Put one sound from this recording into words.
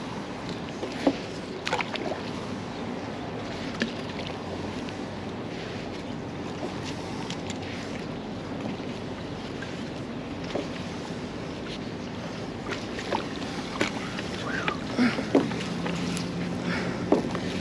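A rope splashes into water and is hauled back.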